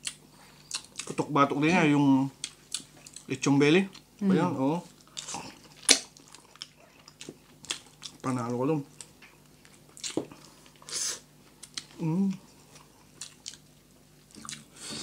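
A woman and a man chew and smack their lips close to a microphone.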